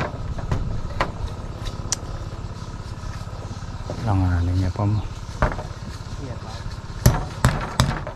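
A hammer taps on bamboo strips.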